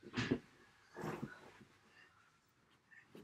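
A blanket rustles and flaps.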